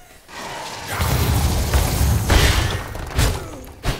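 A magic blast bursts and crackles in a game fight.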